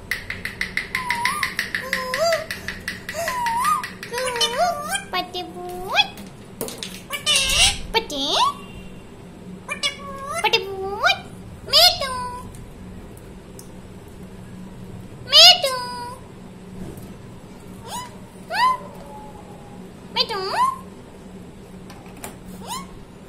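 A parrot chirps and whistles in short rising calls.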